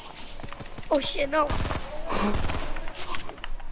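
Gunshots ring out in short bursts.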